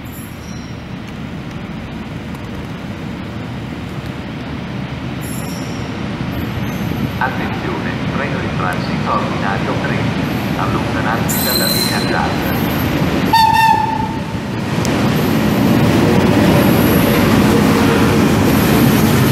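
An electric locomotive hauling a freight train approaches and passes close by.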